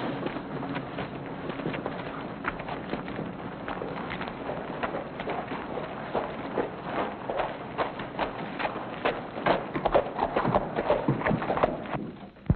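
Footsteps crunch on dirt as men walk along.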